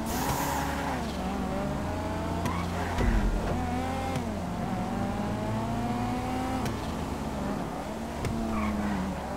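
A race car engine revs and roars, rising and falling in pitch.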